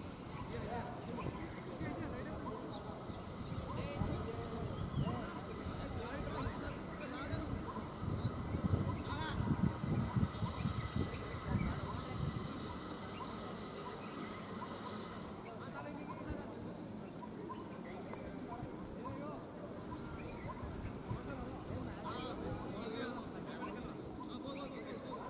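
Men call out to each other across an open field.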